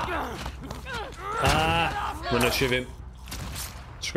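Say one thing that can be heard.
A knife stabs into flesh with wet, heavy thuds.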